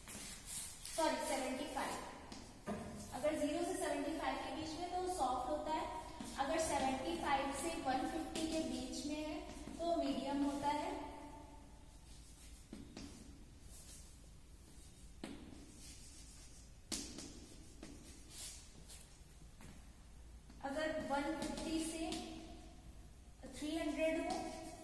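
A young woman talks calmly, explaining.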